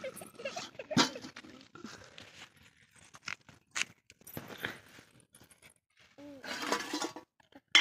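A metal ladle clinks against a steel pot.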